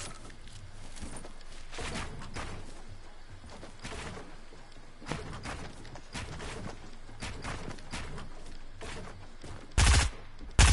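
Building pieces in a video game snap into place with quick, repeated clacks.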